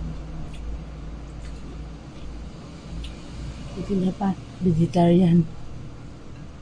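Food crackles softly as a young woman peels it with her fingers.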